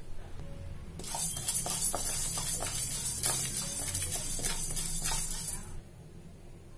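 A spatula stirs dry lentils in a metal pan with a scraping rattle.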